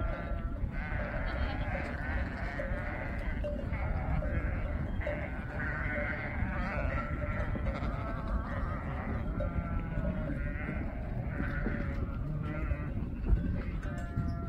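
A large flock of sheep bleats loudly all around.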